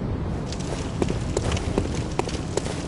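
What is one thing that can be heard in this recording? Footsteps run across stone.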